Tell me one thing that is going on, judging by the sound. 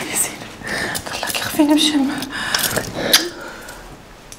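A woman sobs and wails nearby.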